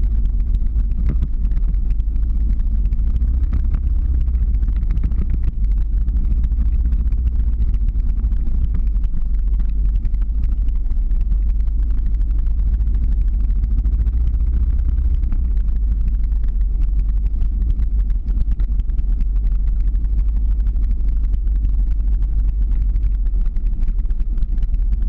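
Skateboard wheels roll and rumble on asphalt.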